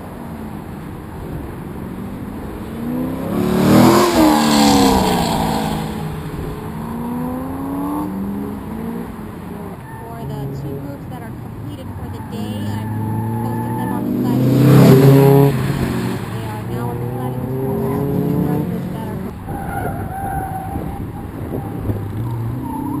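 A car engine revs hard at full throttle as the car races past close by.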